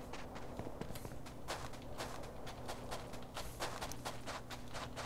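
Footsteps run through rustling grass.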